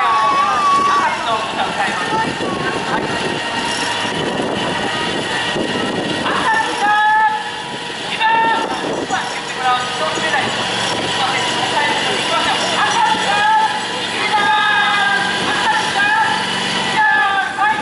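Metal wheels squeal and screech on rails as a railcar is slowly pushed along.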